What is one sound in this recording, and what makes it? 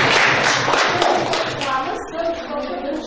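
Children clap their hands.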